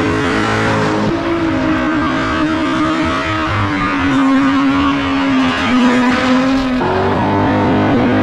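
A car engine revs hard and changes pitch as the car drifts nearby.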